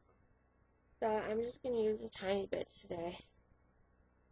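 A young woman talks close to the microphone.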